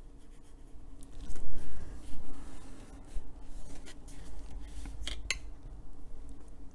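Paper rustles and slides as it is moved.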